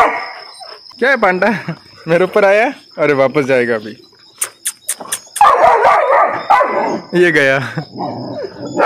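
A dog whines and yelps in rising and falling cries.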